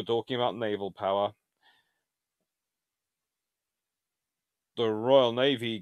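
A man speaks calmly and close to a microphone, pausing between phrases.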